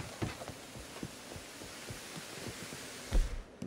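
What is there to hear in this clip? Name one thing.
Footsteps run quickly across stone.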